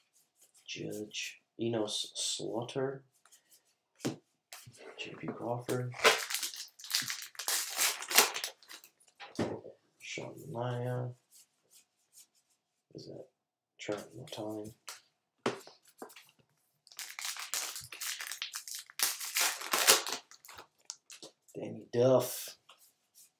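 Trading cards slide and flick against each other.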